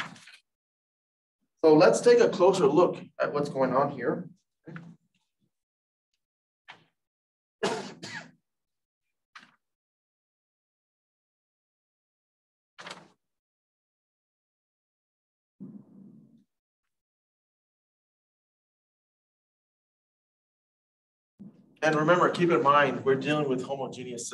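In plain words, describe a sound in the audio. A man lectures through a microphone, speaking calmly in short bursts with pauses.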